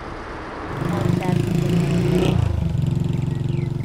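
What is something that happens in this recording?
A motorbike engine hums as the bike rides past on a dirt road.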